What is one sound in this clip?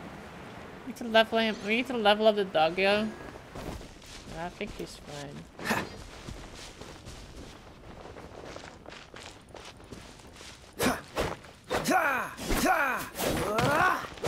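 A young woman talks into a close microphone.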